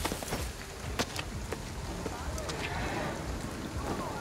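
Footsteps slap on wet pavement.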